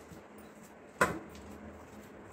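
A metal spoon clinks against a metal plate.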